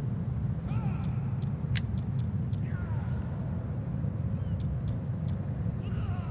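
Menu clicks tick sharply several times.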